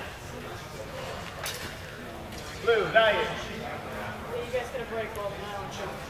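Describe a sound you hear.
Nylon longswords clack together.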